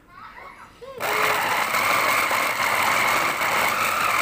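A food processor whirs loudly as it chops.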